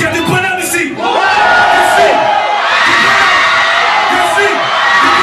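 A man raps loudly into a microphone.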